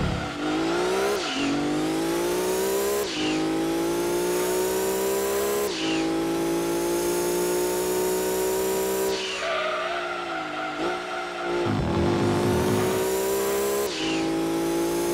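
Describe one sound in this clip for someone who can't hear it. A racing car engine revs high and rises in pitch through each gear, dropping briefly at each shift.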